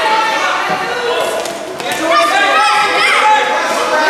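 A ball thumps as children kick it.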